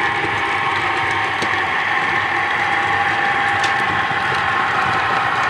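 A model train whirs steadily along the track.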